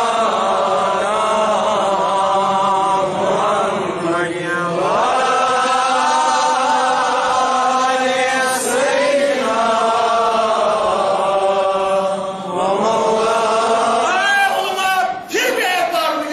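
A man chants in a long, melodic voice over a loudspeaker in a large echoing hall.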